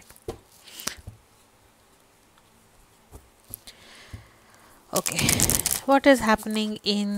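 Playing cards tap and slide against each other as they are handled.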